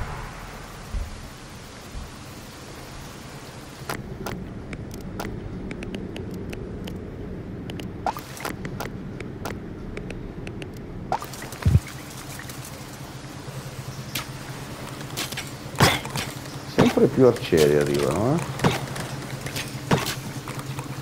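Steady rain patters down onto water.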